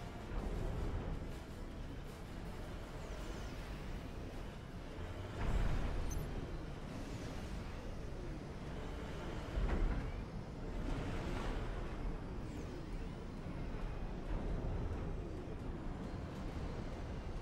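Heavy explosions boom amid a steady rumble of battle.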